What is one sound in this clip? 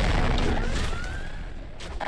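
An energy weapon fires with a buzzing zap.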